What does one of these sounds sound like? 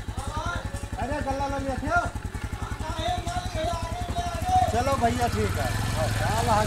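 A motorcycle engine idles with a steady rapid putter.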